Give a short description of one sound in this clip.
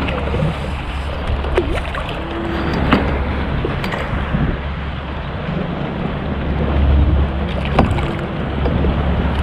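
Water laps against the side of a small boat.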